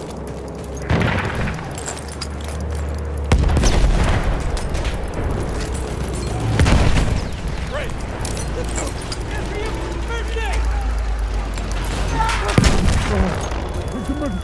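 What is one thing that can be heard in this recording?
A rifle fires in sharp loud shots.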